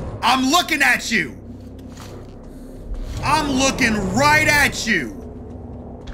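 A man shouts and exclaims loudly into a microphone.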